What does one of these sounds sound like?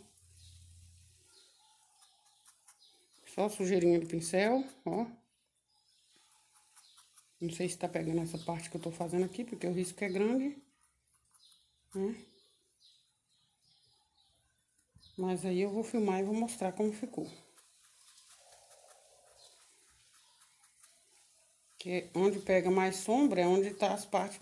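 A brush strokes softly on cloth.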